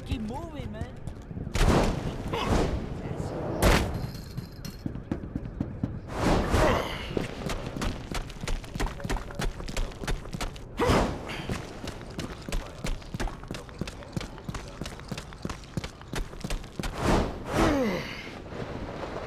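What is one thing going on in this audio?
Quick footsteps thud as a figure runs and climbs.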